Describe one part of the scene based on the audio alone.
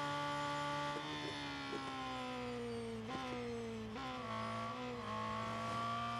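A racing car engine winds down in quick steps as the car brakes.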